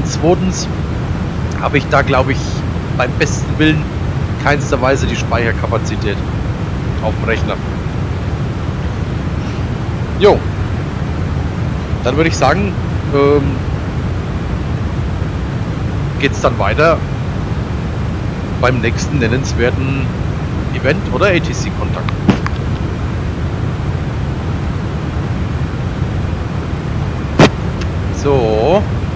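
An airliner's engines drone steadily.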